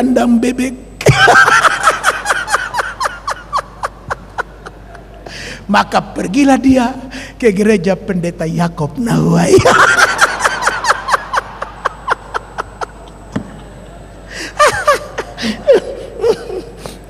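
An audience laughs together.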